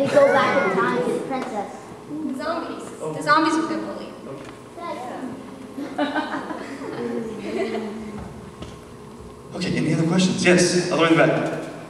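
A teenage girl speaks calmly into a microphone in a hall.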